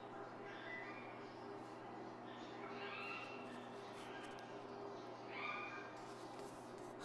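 Paper pages rustle as a man leafs through a magazine.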